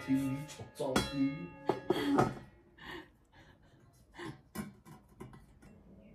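Metal pot parts clink and clatter against each other.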